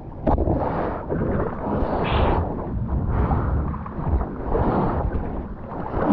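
Hands paddle through the water.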